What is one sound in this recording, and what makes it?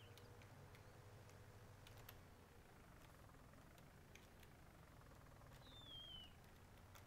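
A seed drill rattles and clatters behind a tractor.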